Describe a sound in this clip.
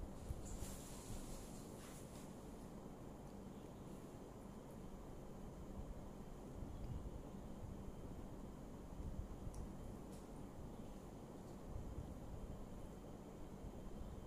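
A woman chews food close by.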